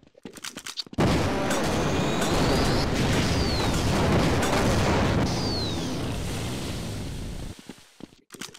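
A weapon fires a steady, crackling energy beam.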